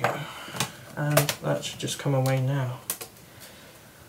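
A plastic panel is lifted off with a clatter.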